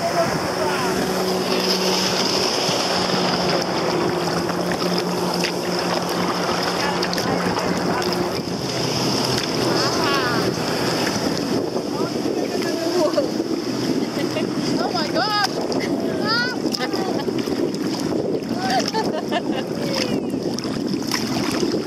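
A kayak paddle dips and splashes in the water.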